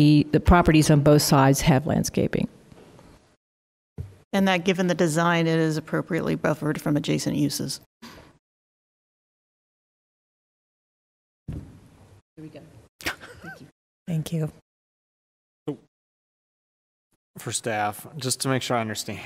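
An adult speaks calmly through a microphone, with pauses.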